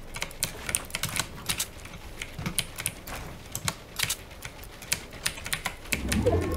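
Building pieces snap into place in quick succession.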